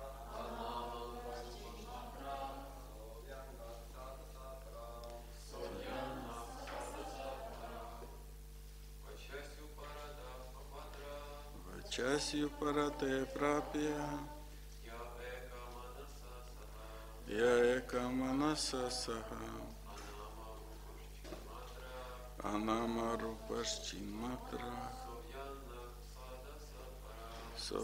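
A middle-aged man speaks calmly and slowly into a microphone, heard through a loudspeaker.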